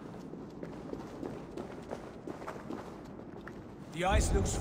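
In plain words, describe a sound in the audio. Footsteps crunch softly on rocky ground.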